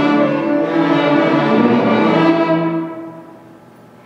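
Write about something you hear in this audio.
A string orchestra plays a full chord that rings out in a large echoing hall.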